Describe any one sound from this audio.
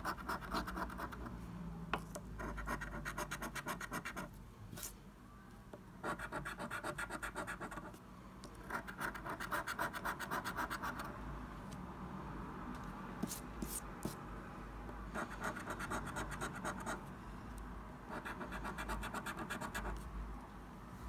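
A coin scratches rapidly across a scratch card in short bursts.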